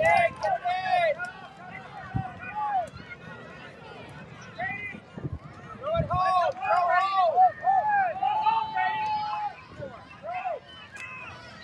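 Children cheer and shout excitedly outdoors.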